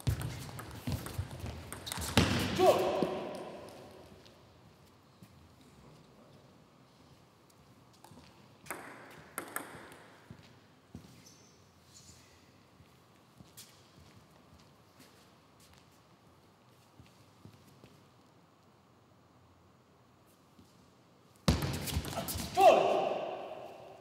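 A table tennis ball clicks quickly back and forth off bats and the table in an echoing hall.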